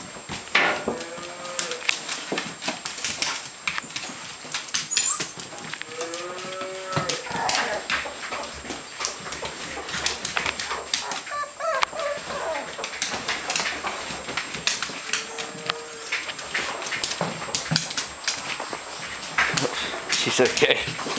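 Small paws patter and scrabble on a hard floor.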